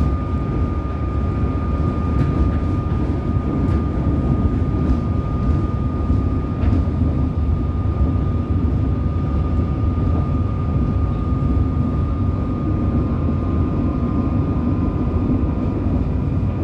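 A train rumbles steadily along the tracks with a low hum.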